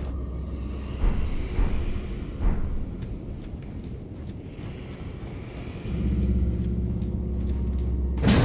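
Armoured footsteps thud on a stone floor.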